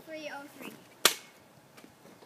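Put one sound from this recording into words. A hockey stick slaps a puck with a sharp crack.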